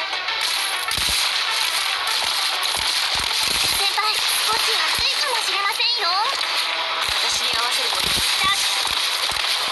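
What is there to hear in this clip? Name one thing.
Sharp hits and blasts of game combat effects ring out in quick bursts.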